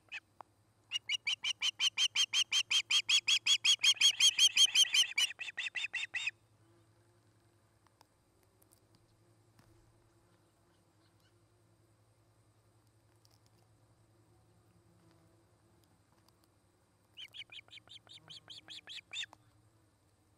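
A bird of prey calls close by in rapid bursts of shrill, high chirps.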